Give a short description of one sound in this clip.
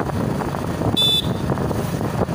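A motorcycle horn beeps briefly.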